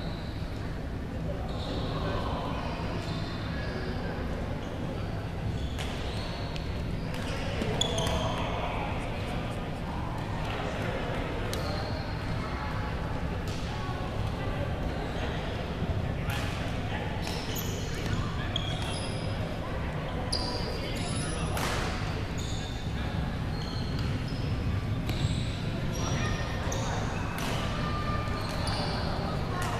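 Sneakers squeak sharply on the hall floor.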